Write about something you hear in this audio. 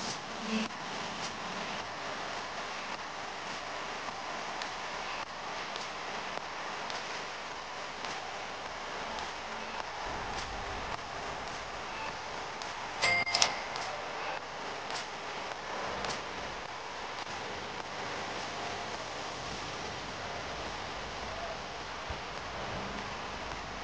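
Cloth rustles softly as hands fold and handle it.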